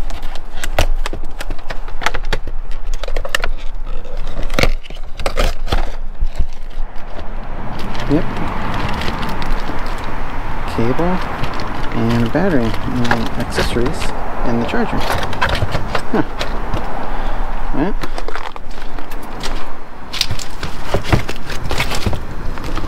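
Cardboard and plastic packaging rustle and crinkle as hands handle them.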